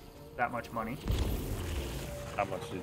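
A deep rumbling blast booms.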